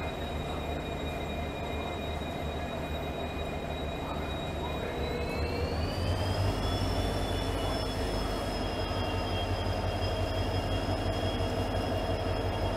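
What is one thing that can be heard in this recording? A locomotive's engine whines with a high tone that rises in pitch.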